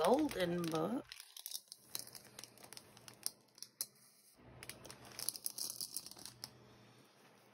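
A plastic wrapper crinkles and rustles as it is handled.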